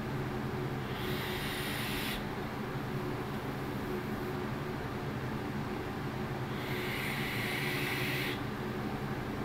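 A man draws hard on a vape with a soft hissing crackle.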